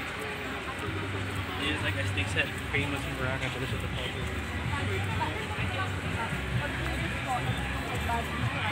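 A man and women talk nearby outdoors.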